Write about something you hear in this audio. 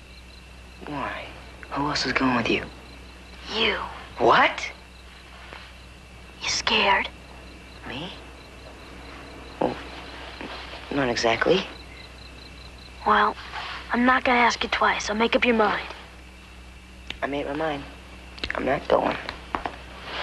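Another young boy answers sharply and with agitation.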